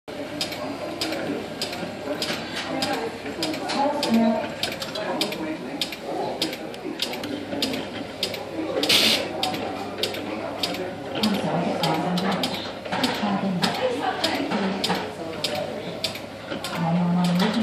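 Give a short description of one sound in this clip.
An electromechanical machine clicks and clatters rapidly and steadily.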